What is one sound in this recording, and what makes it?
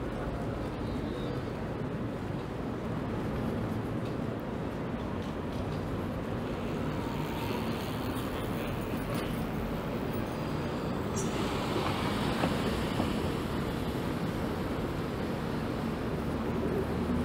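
Footsteps tap on a pavement.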